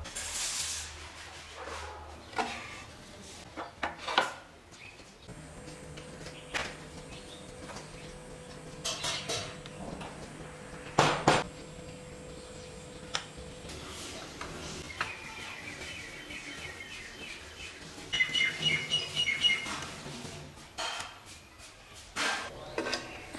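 Wooden boards knock and clatter against each other on a hard floor.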